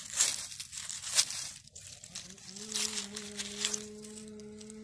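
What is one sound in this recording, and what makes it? A knife scrapes through soil and dry leaves.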